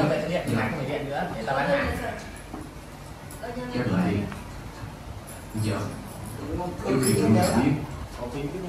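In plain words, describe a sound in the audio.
Several people talk casually nearby.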